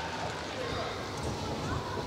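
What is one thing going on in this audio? Footsteps thud on a runway as a gymnast sprints.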